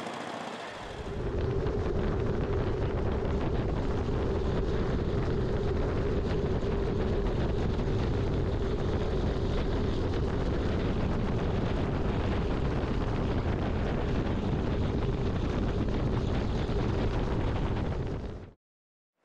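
A motorcycle engine drones steadily as it rides along an open road.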